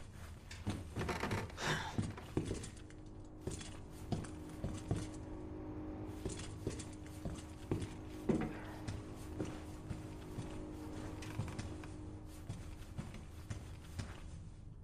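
Footsteps tread steadily on a hard floor.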